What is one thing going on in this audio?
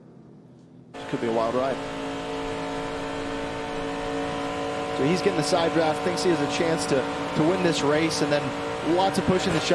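A race car engine roars loudly from close by.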